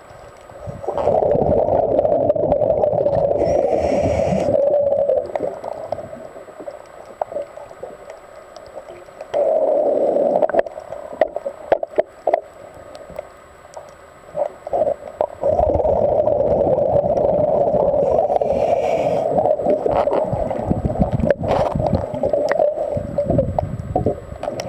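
A diver breathes out underwater, with bubbles rushing and gurgling loudly.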